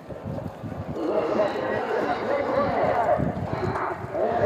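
Many men's voices rise together loudly outdoors.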